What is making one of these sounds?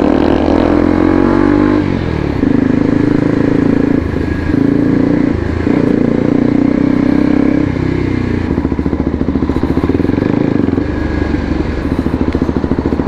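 A motorcycle engine hums close by, rising and falling in pitch as it changes speed.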